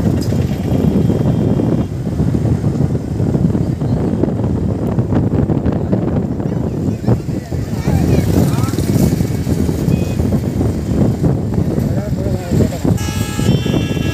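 A large outdoor crowd murmurs in the distance.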